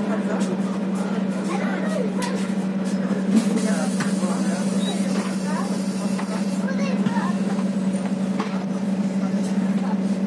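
A bus engine hums steadily from inside the bus.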